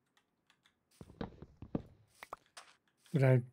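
Wooden blocks crack and break with short knocks.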